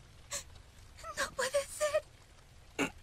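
A young woman speaks softly and emotionally, close by.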